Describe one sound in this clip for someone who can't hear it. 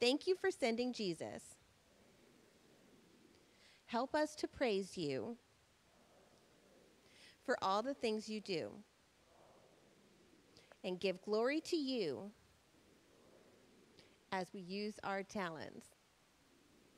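A woman speaks calmly through a microphone in short phrases, with pauses between them, in an echoing hall.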